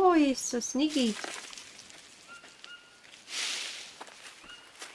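Leaves rustle as plants brush past.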